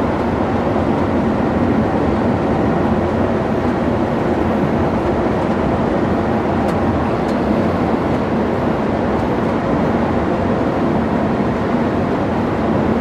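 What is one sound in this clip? Tyres roll over smooth asphalt with a steady rumble.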